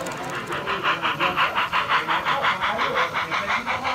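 A model locomotive hums as it runs past.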